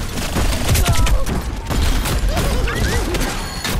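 An explosion bursts with a deep boom.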